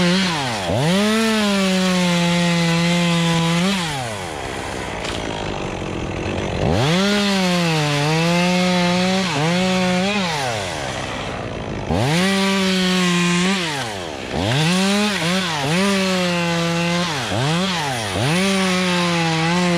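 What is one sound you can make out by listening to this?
A chainsaw revs up and down loudly and close by.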